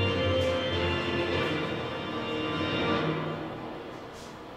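A short bright musical fanfare plays.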